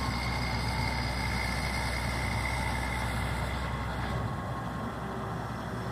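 A steel blade scrapes and pushes wet soil.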